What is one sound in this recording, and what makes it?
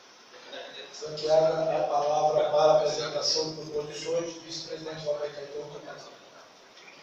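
A man speaks into a microphone, heard through a loudspeaker in an echoing room.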